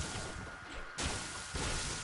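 A gunshot cracks nearby.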